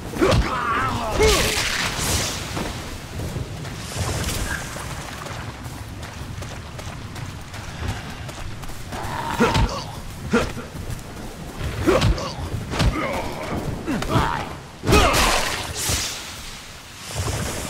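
A creature snarls and groans.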